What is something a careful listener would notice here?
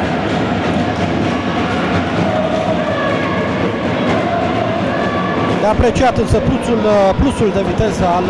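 A handball bounces on the floor.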